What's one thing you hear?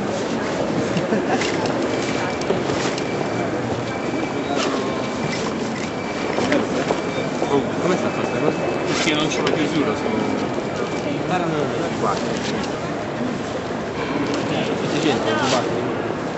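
A bag rustles as gear is stuffed into it.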